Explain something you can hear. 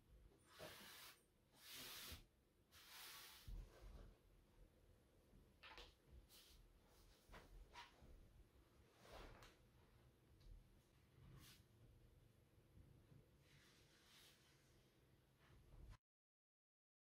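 Stiff fabric rustles and crinkles as hands handle it.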